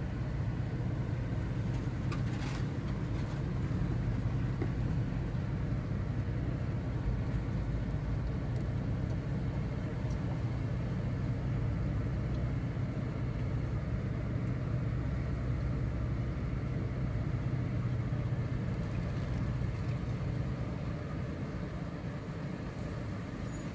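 A vehicle engine rumbles steadily close by.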